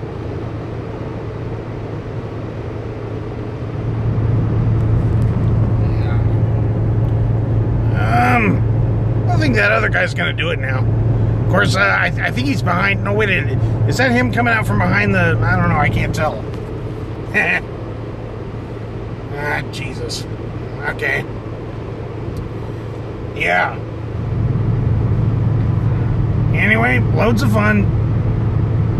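Tyres rumble on a road.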